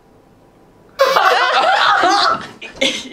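A young woman squeals with laughter.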